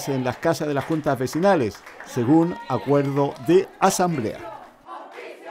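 A crowd chants loudly in unison in an echoing hall.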